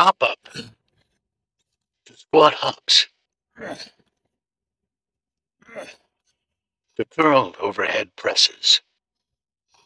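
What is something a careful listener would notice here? A man speaks with energy, close by.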